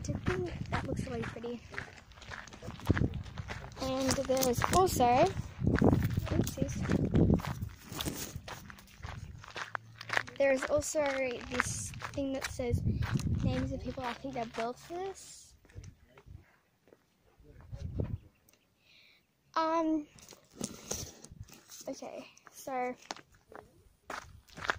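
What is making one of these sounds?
A young girl talks with animation close to the microphone.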